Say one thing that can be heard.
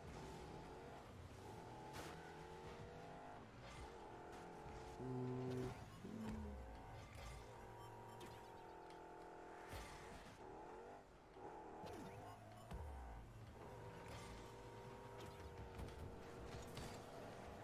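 A video game car engine hums and whines steadily.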